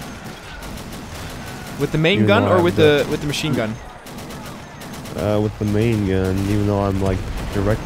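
A shell explodes with a heavy boom.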